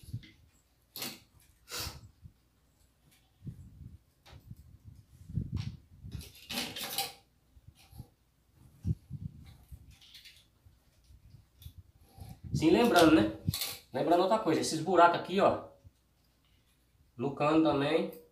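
Metal rods clink and knock against each other and a hard floor.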